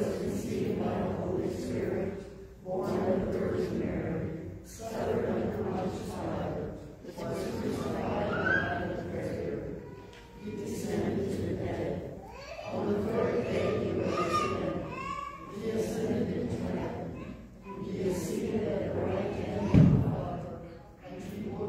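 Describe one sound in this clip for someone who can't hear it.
A congregation sings a hymn together in an echoing hall.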